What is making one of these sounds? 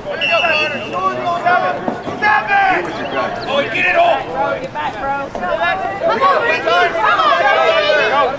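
Young women shout and call to each other across an open field.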